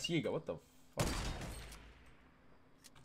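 A sniper rifle fires a single loud shot that echoes away.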